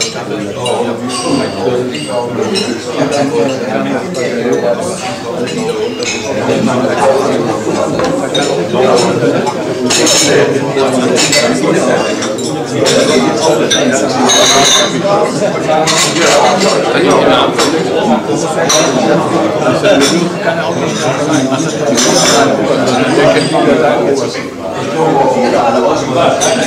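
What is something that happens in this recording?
Cups and cutlery clink on china.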